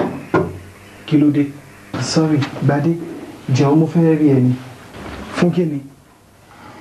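A man speaks apologetically from a doorway.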